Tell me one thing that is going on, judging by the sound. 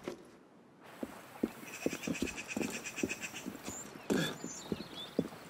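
Footsteps thud quickly on stone.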